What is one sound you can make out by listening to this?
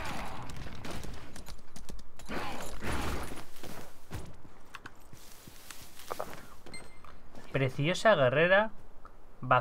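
Magic blasts whoosh and boom in a fight.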